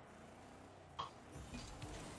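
A ball is struck with a hollow thump.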